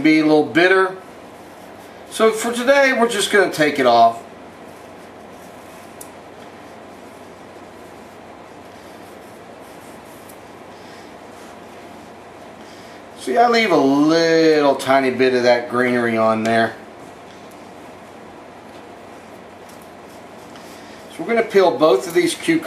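A peeler scrapes the skin off a cucumber.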